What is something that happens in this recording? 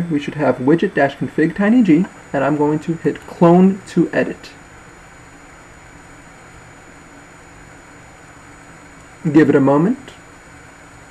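A young man speaks calmly and close to a microphone, pausing between phrases.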